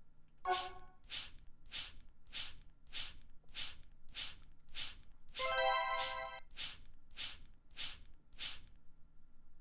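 Short electronic blips sound in quick succession.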